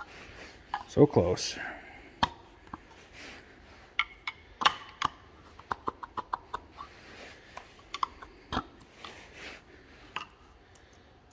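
A screwdriver scrapes and taps against a metal engine part.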